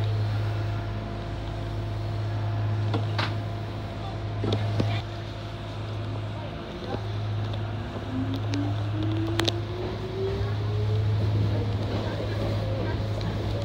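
A train's motor hums steadily from inside the cab.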